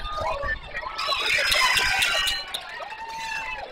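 Spectators cheer and clap in a burst.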